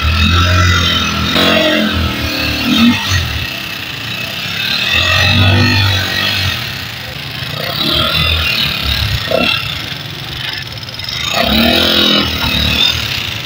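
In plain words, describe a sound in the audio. A motorcycle engine runs nearby, its sound rising and falling as it revs.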